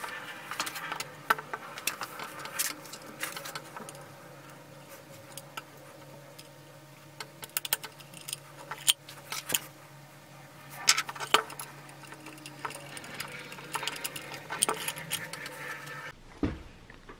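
Small plastic and metal parts click and tap as they are handled.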